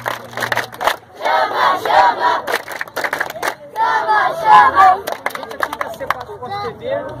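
A crowd of young men shouts and cheers loudly outdoors.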